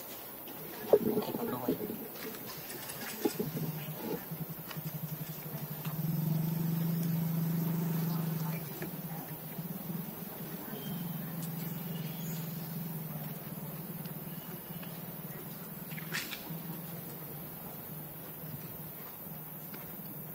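A baby monkey chews and nibbles on food.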